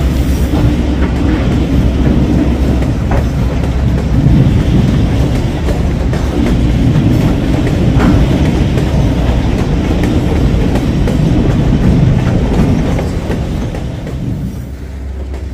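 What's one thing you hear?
Wood chips pour steadily from a chute into a rail car with a rushing rumble.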